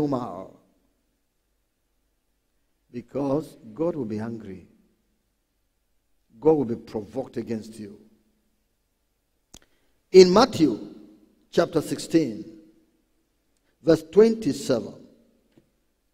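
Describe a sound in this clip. A man preaches into a microphone in short, emphatic bursts with pauses between them.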